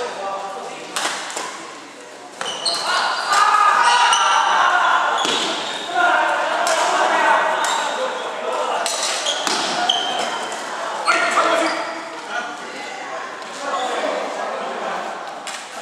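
A badminton racket strikes a shuttlecock in an echoing hall.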